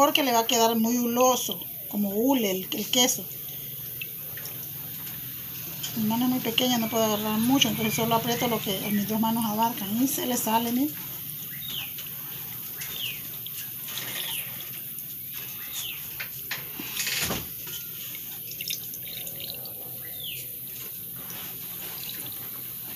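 Wet curds squelch softly as hands squeeze them.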